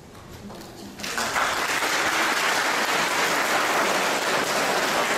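A group of people applaud.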